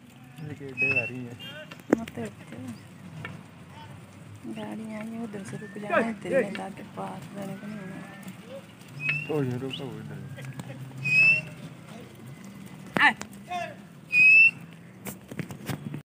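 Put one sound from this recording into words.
Sheep bleat loudly and often, close by.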